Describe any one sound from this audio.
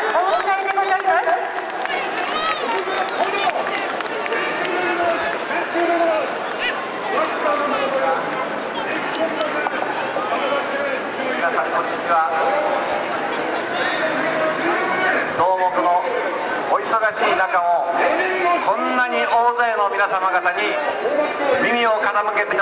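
A man speaks forcefully through a loudspeaker, echoing off buildings.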